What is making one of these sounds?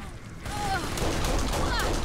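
A gunshot cracks.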